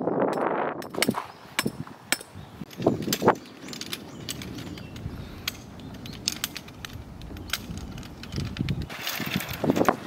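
Tent poles click and clack as they are fitted together.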